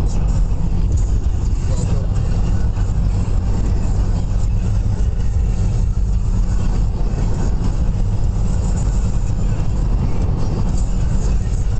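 Wind rumbles loudly past a moving car.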